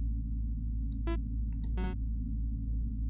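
Game pieces click softly as they are placed.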